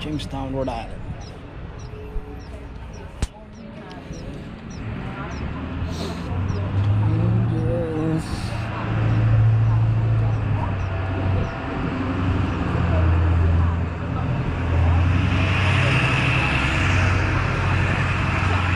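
Footsteps tap steadily on a pavement.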